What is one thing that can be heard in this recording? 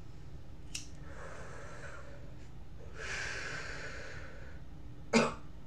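A man draws air in with a long hissing breath.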